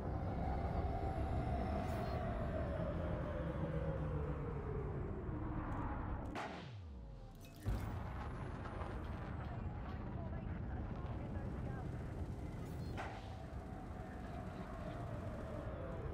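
A spaceship engine rumbles and hums, its pitch slowly sliding.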